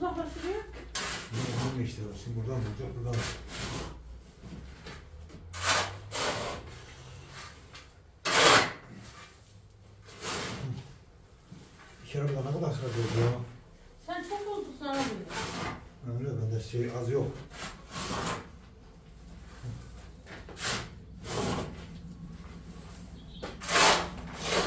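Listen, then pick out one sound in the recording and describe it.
A shovel scrapes and scoops through gritty cement powder.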